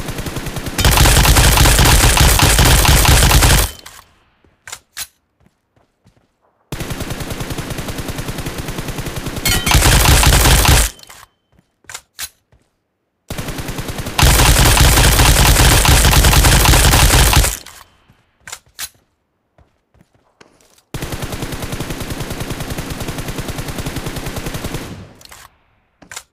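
A rifle fires long, rapid bursts of gunshots.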